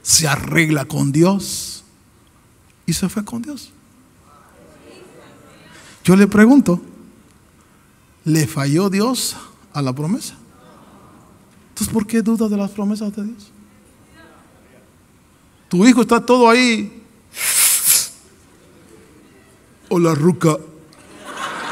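A man preaches with animation into a microphone, in short, emphatic bursts.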